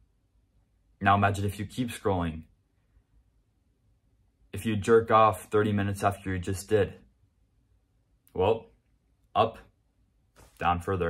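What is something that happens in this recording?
A young man talks calmly and close by, in short bursts with pauses.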